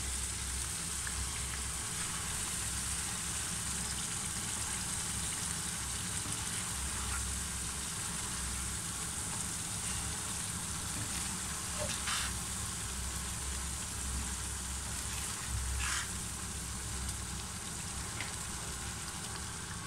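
A wooden spatula scrapes and stirs food in a metal pan.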